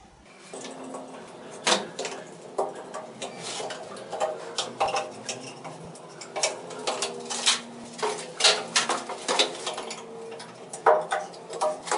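A metal trowel taps and scrapes against tiles.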